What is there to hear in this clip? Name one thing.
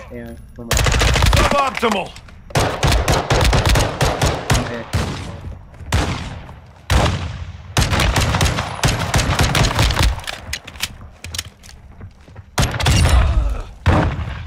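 Gunfire rings out in rapid bursts.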